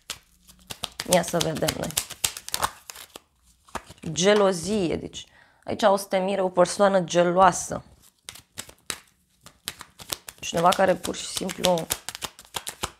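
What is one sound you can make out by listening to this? A young woman speaks calmly and closely into a microphone.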